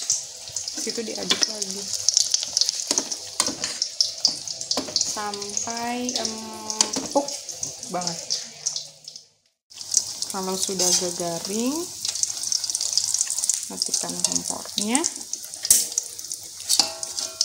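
Oil sizzles and spatters in a hot pan.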